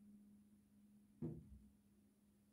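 A glass vase clinks down on a table.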